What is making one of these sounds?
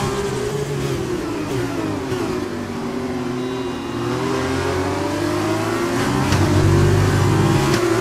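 A racing car engine drops low as the car brakes into a slow corner and then revs back up.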